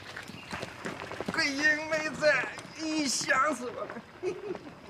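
A man shouts angrily outdoors.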